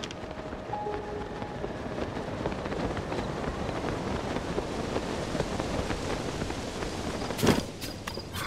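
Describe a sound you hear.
Wind rushes steadily past a gliding figure.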